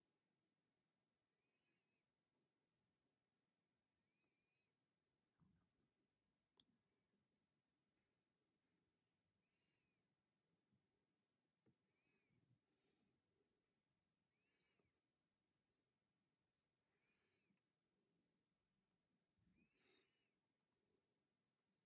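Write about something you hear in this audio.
Thread rustles faintly as it is pulled through beads.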